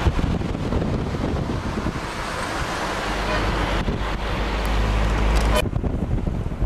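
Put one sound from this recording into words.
A car drives by close alongside.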